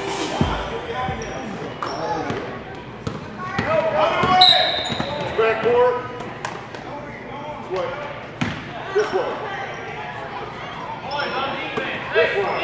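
A basketball bounces on a hardwood floor in an echoing gym.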